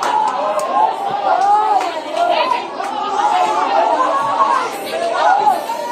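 A crowd of men and women sing loudly together in an echoing room.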